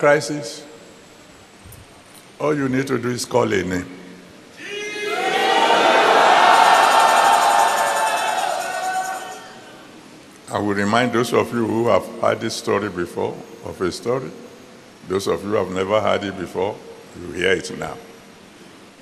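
A man speaks with animation into a microphone, heard over loudspeakers in a large hall.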